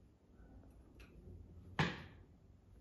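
A safe's combination dial clicks as it is turned.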